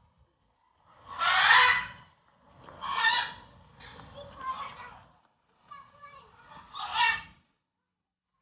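A monkey calls loudly in short bursts nearby.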